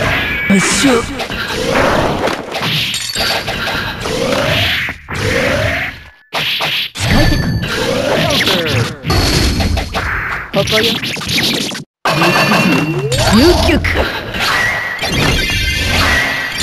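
Video game punches and hits land with sharp thuds.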